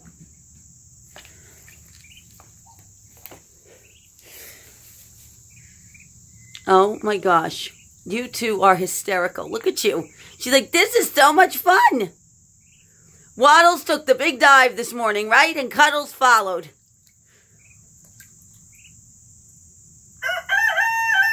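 A Muscovy duckling splashes and paddles in a shallow bowl of water.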